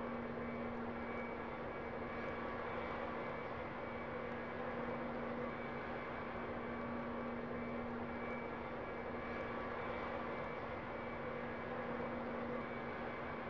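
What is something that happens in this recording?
An engine drones steadily in the distance.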